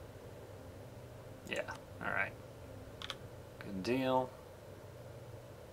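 Interface clicks sound as a game menu opens and closes.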